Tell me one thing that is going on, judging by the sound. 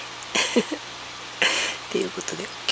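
A woman laughs briefly.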